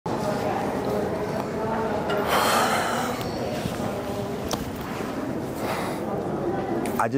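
A crowd murmurs faintly in a large echoing hall.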